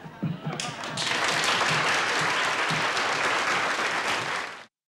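A large audience applauds and cheers loudly.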